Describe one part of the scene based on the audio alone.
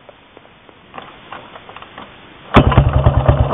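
A motorcycle's kick-starter is pushed and clanks.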